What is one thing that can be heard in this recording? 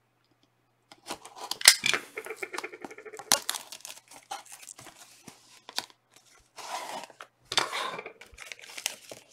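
Cardboard tears and rips open.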